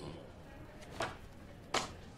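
A paper folder rustles as it is handled.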